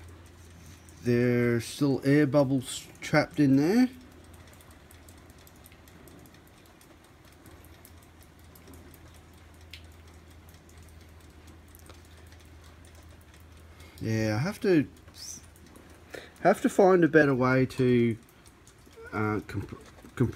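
Ice crackles and fizzes softly in water.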